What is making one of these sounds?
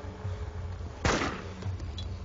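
A rifle fires a single loud shot indoors.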